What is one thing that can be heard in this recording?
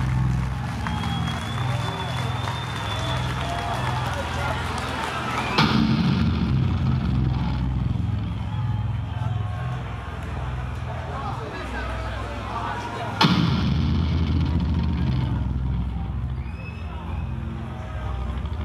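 Loud live music with a heavy pounding bass plays through big speakers.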